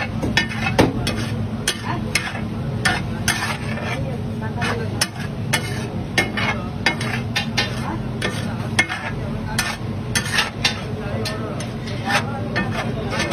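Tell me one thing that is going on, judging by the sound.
Sauce bubbles and sizzles on a hot griddle.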